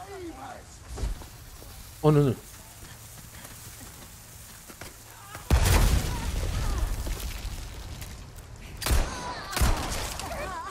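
Gunshots bang loudly.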